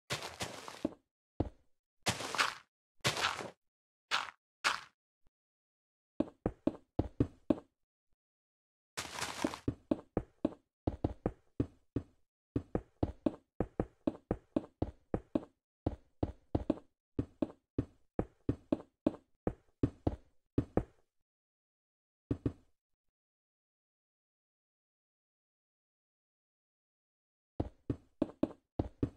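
Blocks are placed and broken with short, quick thuds and crunches.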